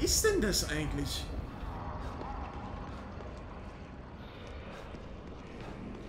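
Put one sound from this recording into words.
Footsteps hurry across a stone floor.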